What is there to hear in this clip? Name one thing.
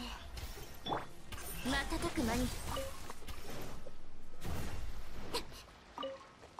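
Magical blasts whoosh and crackle during a fight.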